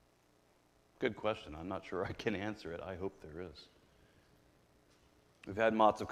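A middle-aged man speaks calmly into a microphone, heard through loudspeakers in a hall.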